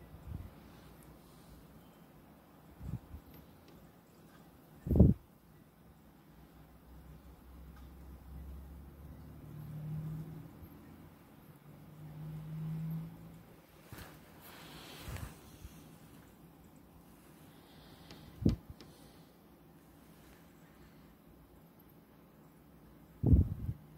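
Wind gusts outside and buffets against a window.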